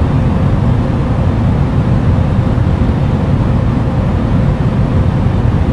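Air roars steadily against an aircraft.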